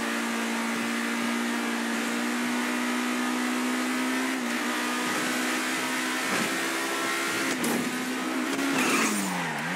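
A sports car engine hums steadily at speed.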